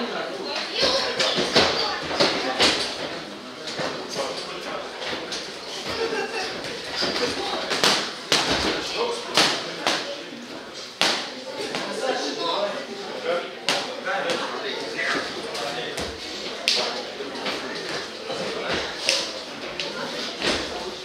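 Boxing gloves and kicks thud against bodies in an echoing hall.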